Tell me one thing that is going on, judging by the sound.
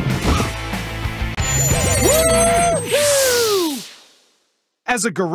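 Magical chimes sparkle and ring out in a bright burst.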